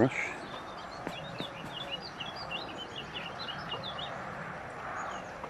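A small bird chirps repeatedly nearby, outdoors.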